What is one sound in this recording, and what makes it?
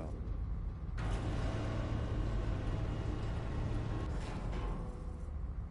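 A lift hums steadily as it moves.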